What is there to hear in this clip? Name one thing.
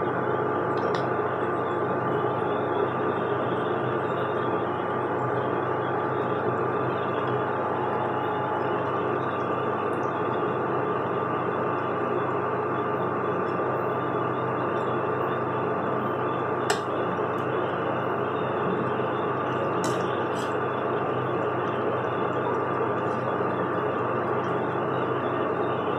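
A metal spoon scrapes and clinks against a metal pot.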